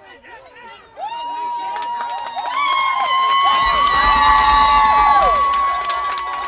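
A crowd of spectators cheers and screams loudly outdoors.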